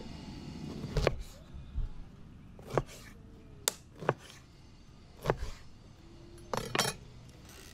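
A knife chops down onto a plastic cutting board.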